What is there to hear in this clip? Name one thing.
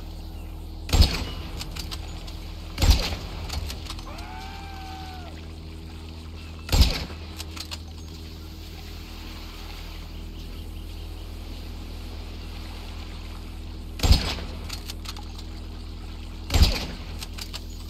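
A rifle fires loud single shots, each followed by a short echo.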